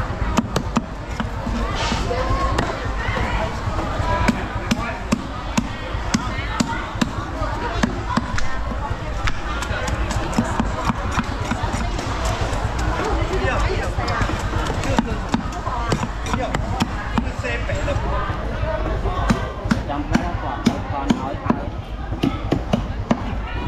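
A cleaver chops fish on a wooden block with sharp, repeated thuds.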